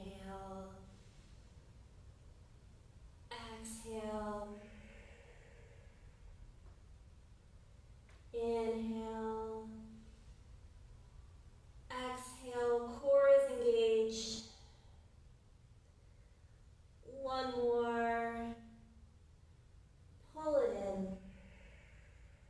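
A woman speaks calmly in short phrases with long pauses between them.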